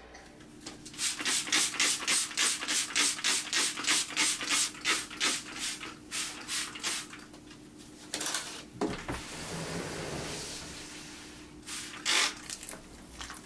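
A spray bottle mists water in quick bursts.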